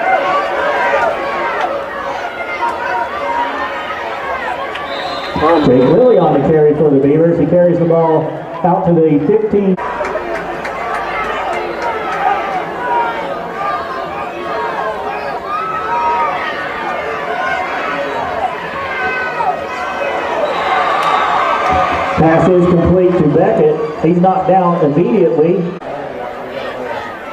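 A crowd of spectators cheers and chatters loudly in open stands.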